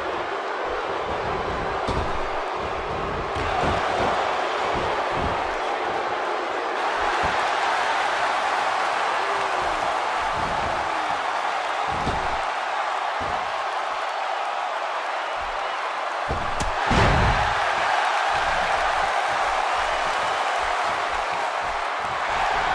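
Heavy thuds sound as wrestlers hit the mat.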